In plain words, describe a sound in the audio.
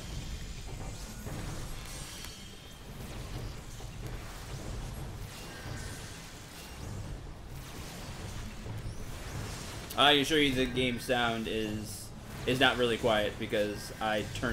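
Magic spells whoosh and crackle in battle.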